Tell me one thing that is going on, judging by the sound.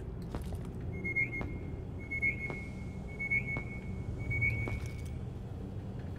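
A handheld tracker beeps in quick, repeated chirps.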